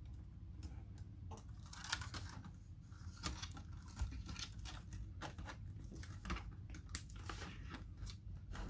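Plastic clicks and snaps as a laptop keyboard is pressed and pried into place.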